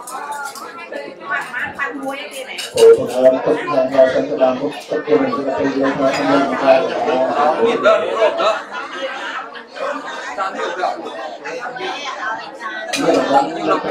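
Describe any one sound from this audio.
An elderly man speaks steadily into a handheld microphone, heard through a loudspeaker in an echoing room.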